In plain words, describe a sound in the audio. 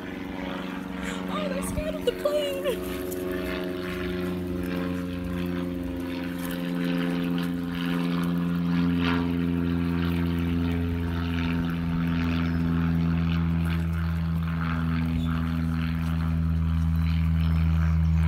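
A single-engine propeller plane drones overhead.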